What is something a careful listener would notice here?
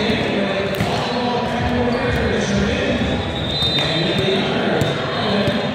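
Many voices chatter and call out in a large echoing hall.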